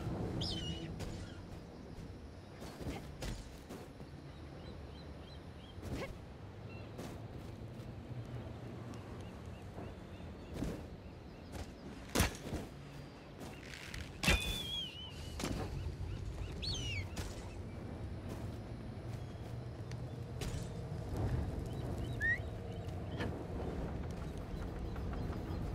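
Light footsteps patter on stone.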